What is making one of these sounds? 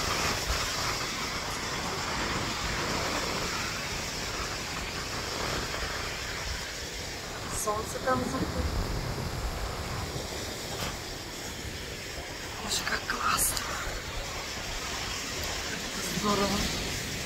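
Waves wash onto the shore nearby.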